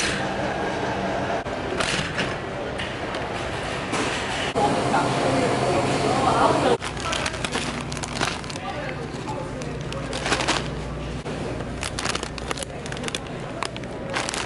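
A wire shopping cart rattles as it rolls.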